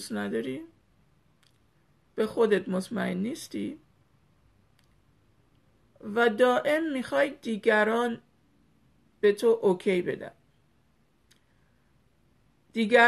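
A middle-aged woman talks calmly and closely into a microphone, with pauses.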